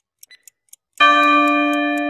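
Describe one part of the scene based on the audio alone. A bell rings loudly when the countdown ends.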